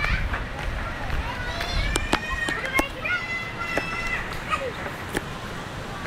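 Young children shout and squeal nearby.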